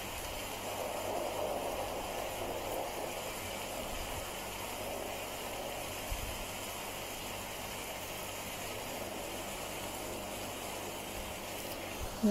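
A fine pen scratches softly on paper.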